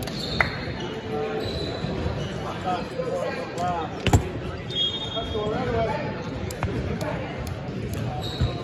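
Young players call out to each other in a large echoing gym.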